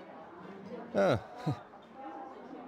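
A man gulps loudly.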